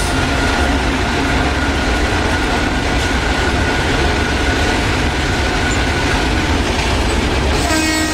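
A train rolls along the track.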